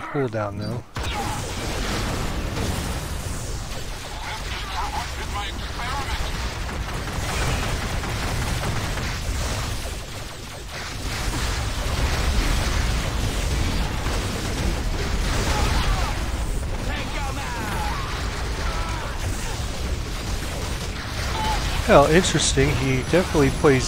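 Explosions boom and rumble in a loud battle.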